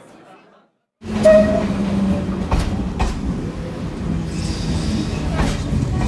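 A train rumbles and hums as it pulls past close by.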